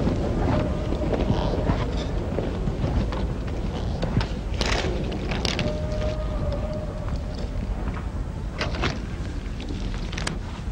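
Footsteps walk along pavement.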